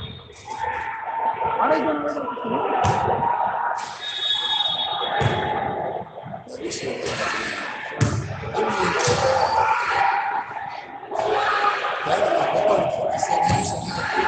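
Young women and girls talk and call out in a large echoing gym.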